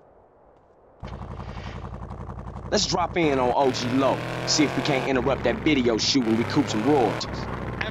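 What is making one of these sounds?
A dune buggy engine starts and revs steadily.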